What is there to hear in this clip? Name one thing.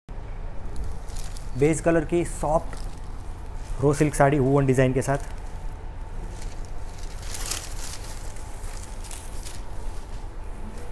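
Silk fabric rustles as it is unfolded and lifted.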